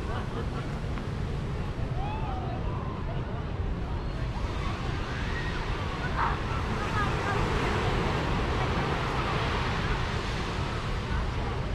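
Small waves wash gently onto a beach.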